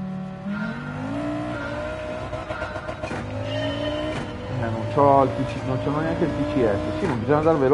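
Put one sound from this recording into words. A rally car engine revs hard and climbs through the gears.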